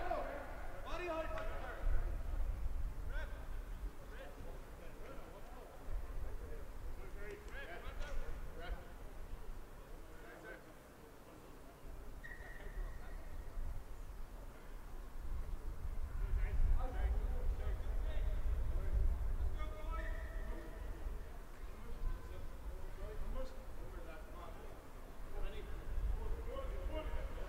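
Rugby players shout and call to each other across an open field.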